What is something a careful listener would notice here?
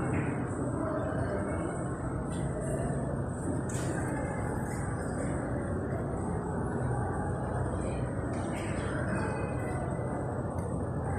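Traffic hums steadily from a busy road below, outdoors.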